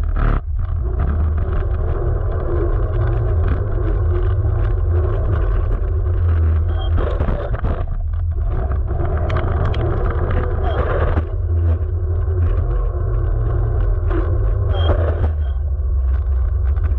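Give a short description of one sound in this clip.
Tyres roll over rough asphalt.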